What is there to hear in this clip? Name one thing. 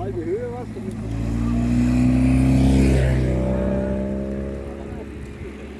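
A second motorcycle approaches and passes with a rising engine hum.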